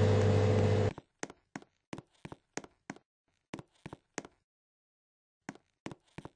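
Footsteps tap on a hard floor at an even pace.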